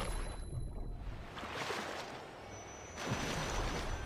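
Water splashes as a shark bursts out of the sea.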